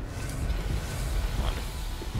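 Fire bursts and crackles with a roar.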